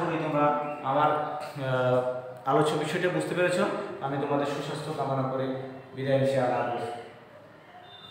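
A man speaks clearly and steadily close by.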